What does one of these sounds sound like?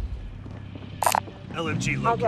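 Ammunition is picked up with a short metallic click.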